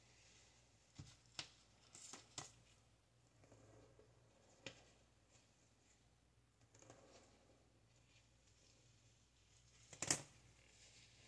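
A plastic hair clip snaps shut with a click.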